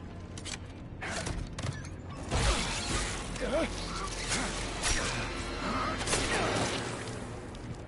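Heavy thuds and scuffling of a close struggle.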